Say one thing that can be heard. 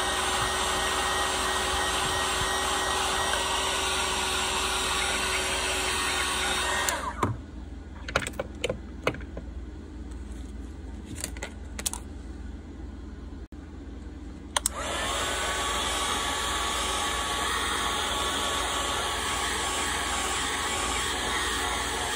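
A heat gun blows with a steady roar.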